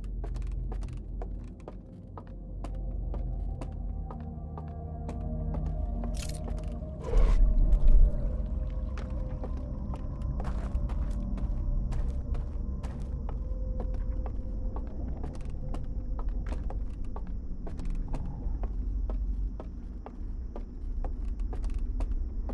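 Footsteps thud steadily across wooden boards.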